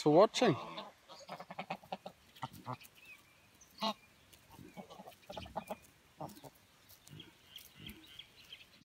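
Geese murmur softly while grazing.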